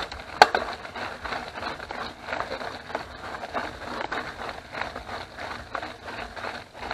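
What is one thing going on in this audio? A bicycle frame rattles over bumps.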